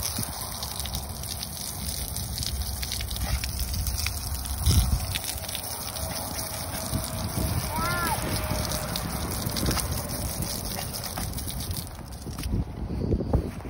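Foaming tire cleaner fizzes and crackles softly on a rubber tire.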